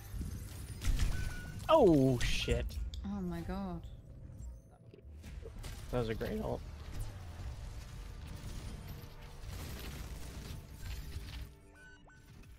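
Video game gunfire and explosions crackle and boom.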